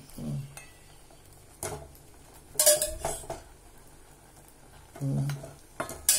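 A metal ladle clinks against a steel pot.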